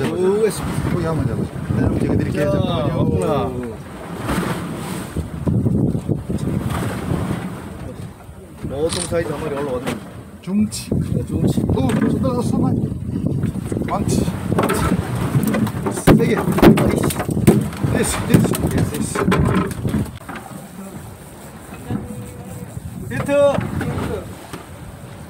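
Wind buffets across an open boat at sea.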